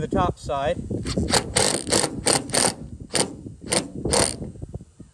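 A cordless drill whirs in short bursts, driving screws.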